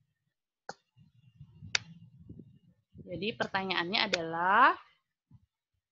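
A young woman speaks through an online call, her voice rising into a drawn-out exclamation.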